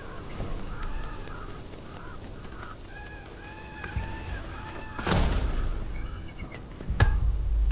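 Birds chirp and twitter in the open air.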